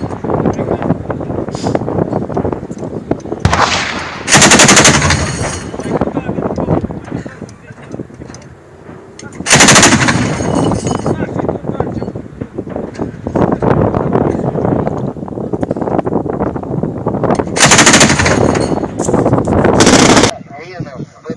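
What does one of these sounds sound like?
An anti-aircraft autocannon fires heavy bursts outdoors.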